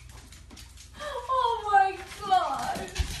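Small dogs whine and yelp excitedly.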